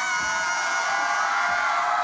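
A young woman shouts loudly.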